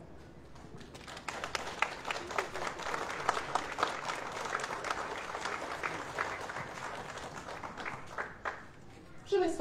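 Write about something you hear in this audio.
A small crowd applauds outdoors.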